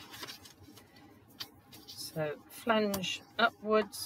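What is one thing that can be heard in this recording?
A tool scrapes along paper as it scores a fold.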